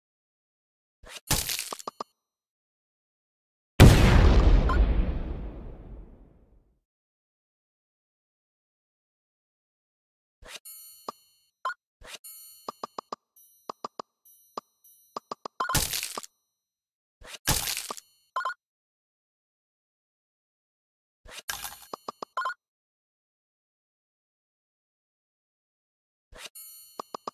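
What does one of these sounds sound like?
Game sound effects chime and pop as tiles match and clear.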